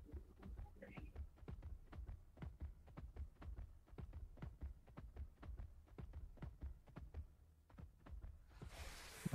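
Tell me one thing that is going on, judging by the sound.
A large animal's feet pound quickly and evenly on dirt.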